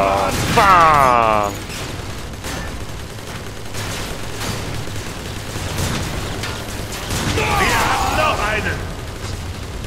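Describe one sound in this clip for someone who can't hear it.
Energy weapons zap and whine in rapid bursts.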